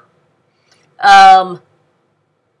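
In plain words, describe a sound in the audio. A young woman sings a short high note close to a microphone.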